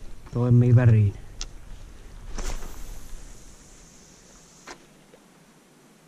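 A fishing reel whirs softly as line is wound in.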